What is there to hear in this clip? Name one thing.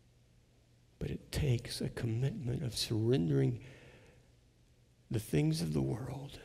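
An older man speaks with emphasis through a microphone.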